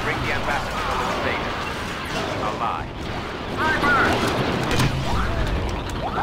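Blaster shots fire rapidly in a gunfight.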